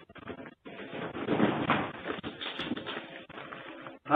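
A heavy panel crashes down from the ceiling with a loud clatter.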